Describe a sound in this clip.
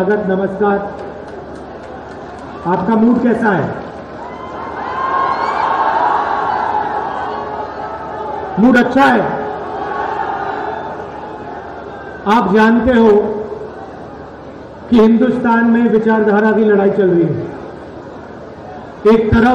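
A man speaks loudly into a microphone, heard through loudspeakers outdoors, with long pauses.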